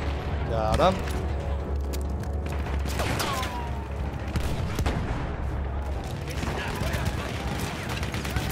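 A deep, steady rumble of battle fills the air.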